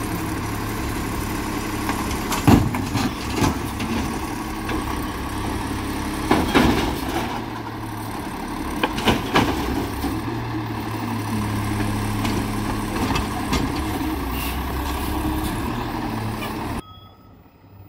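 A garbage truck's diesel engine idles loudly close by.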